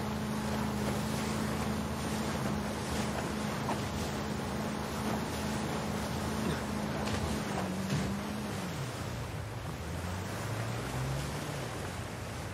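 Water rushes and splashes against a speeding boat's hull.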